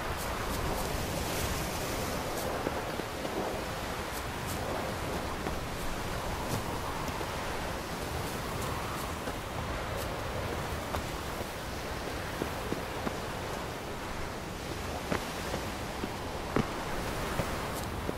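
Footsteps crunch through grass and over rock.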